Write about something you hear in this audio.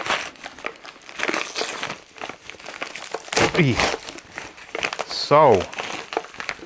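Paper and packing tape crinkle and tear as a package is opened up close.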